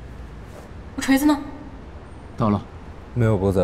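A young woman speaks briefly and sharply, close by.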